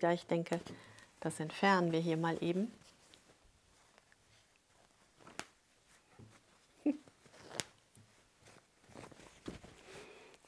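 Fabric rustles as it is handled and folded.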